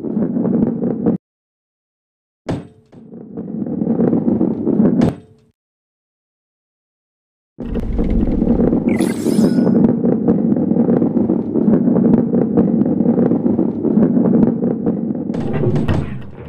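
A ball rolls along with a low rumble.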